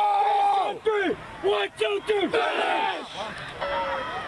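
A team of teenage boys shouts together in a huddle outdoors.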